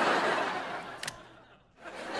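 A light switch clicks once.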